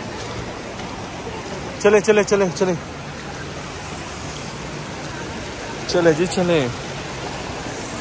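Water rushes over stones in a shallow stream.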